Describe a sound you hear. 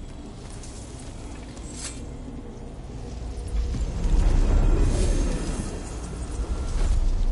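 A shimmering stream of magic crackles and hums.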